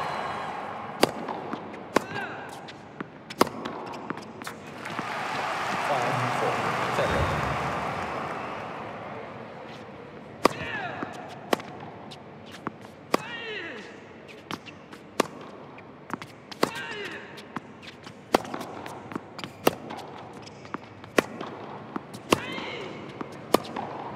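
A tennis racket strikes a ball on a hard indoor court.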